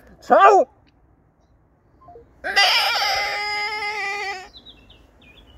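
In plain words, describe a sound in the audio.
A man close by lets out short and long high, wavering cries in a put-on voice.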